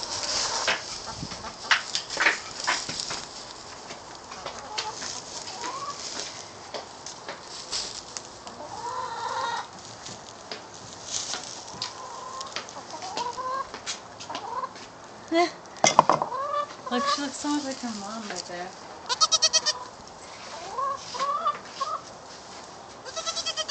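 Hens cluck softly nearby.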